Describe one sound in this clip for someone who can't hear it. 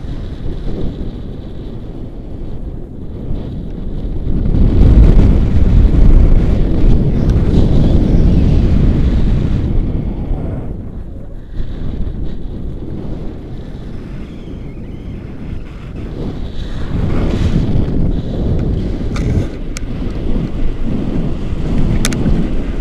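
Wind rushes and buffets loudly past a microphone outdoors.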